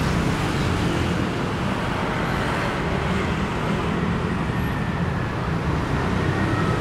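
City traffic rumbles steadily along a nearby street.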